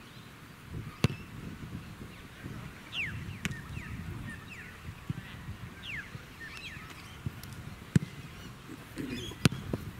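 A ball thuds sharply outdoors.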